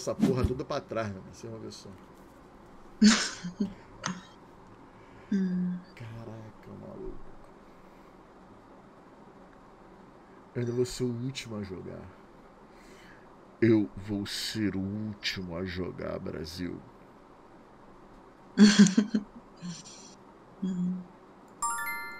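A man talks casually into a close microphone, in bursts with pauses.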